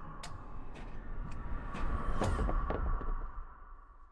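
A chess piece topples onto a board with a knock.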